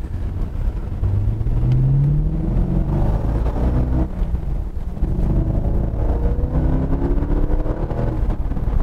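A V8 sports car engine revs up as the car accelerates, heard from inside the car.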